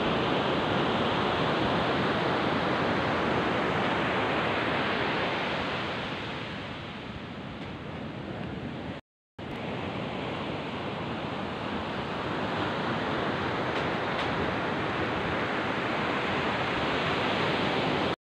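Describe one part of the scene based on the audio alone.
Strong wind roars and buffets against the microphone.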